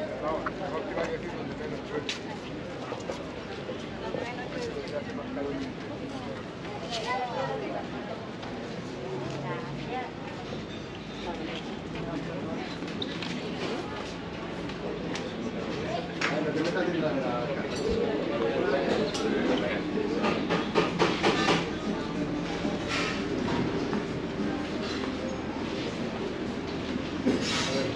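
Men and women chatter and murmur nearby outdoors.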